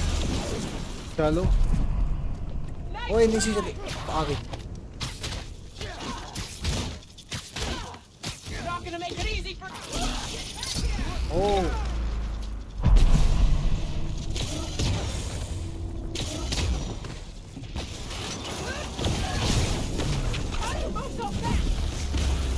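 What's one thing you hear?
Punches and blasts thud and crash in a fight.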